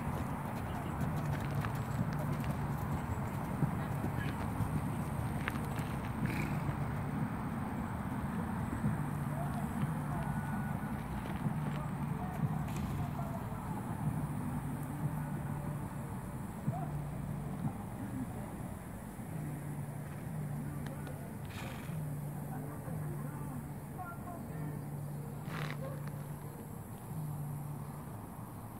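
A horse's hooves thud on soft ground at a canter.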